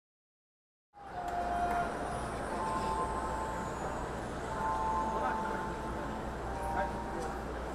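A marching band plays long held notes across a large open stadium.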